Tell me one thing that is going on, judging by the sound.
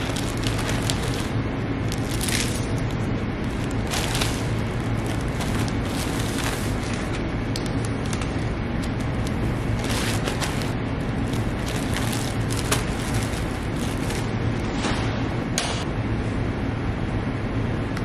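Plastic mailer bags crinkle and rustle as they are handled.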